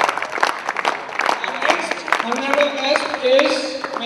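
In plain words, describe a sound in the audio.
People clap their hands.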